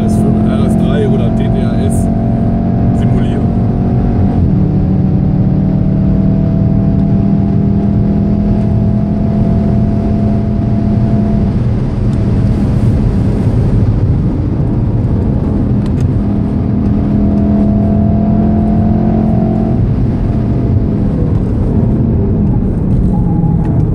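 A car engine roars at high speed, its pitch shifting through gear changes.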